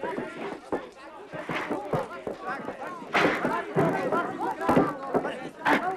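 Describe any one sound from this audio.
Bodies thud and knock against wooden benches in a scuffle.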